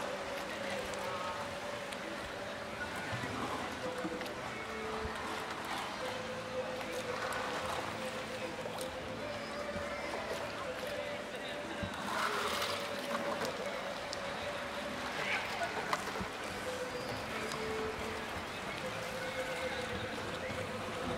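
Water laps and sloshes steadily in a pool outdoors.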